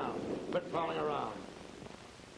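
A man speaks calmly through an old, hissy film soundtrack.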